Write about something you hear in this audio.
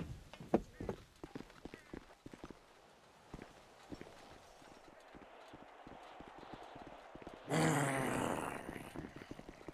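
Footsteps tread on a hard road.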